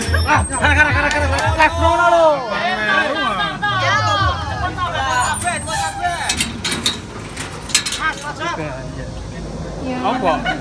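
Young women and men shout and squeal excitedly nearby.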